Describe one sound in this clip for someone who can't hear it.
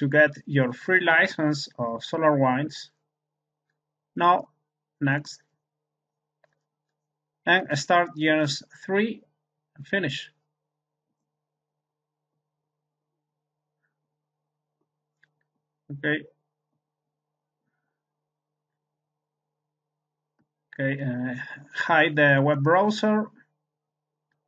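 A man explains calmly in short bursts with pauses.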